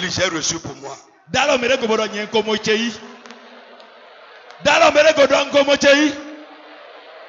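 A man speaks forcefully through a microphone in a large echoing hall.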